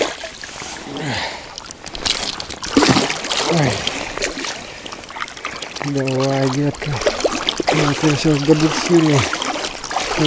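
A fish splashes and thrashes at the water's surface.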